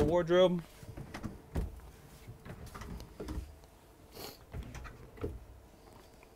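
Wooden drawers slide open with soft knocks.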